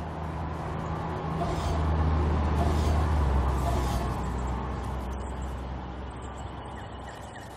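A truck engine rumbles loudly as it drives past, then fades.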